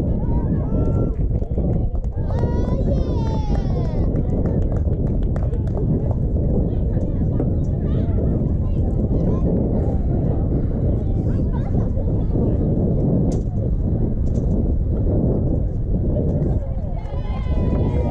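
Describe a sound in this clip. Wind blusters loudly across the microphone outdoors.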